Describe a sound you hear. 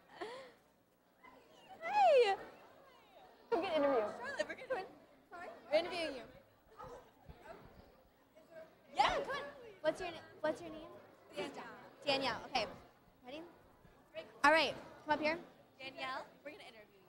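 Young women talk with animation into microphones, close by.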